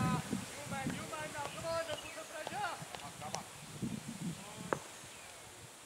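Men call out and chatter in the distance.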